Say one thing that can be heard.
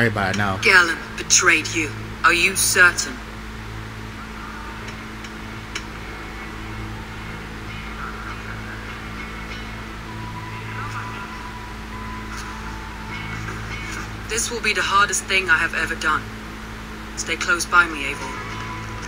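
A woman speaks calmly and seriously, close by.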